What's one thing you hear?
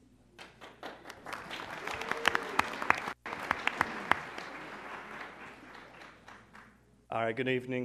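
An audience claps and cheers in a large room.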